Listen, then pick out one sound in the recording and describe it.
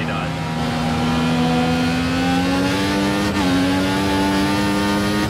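A racing car engine revs up steadily.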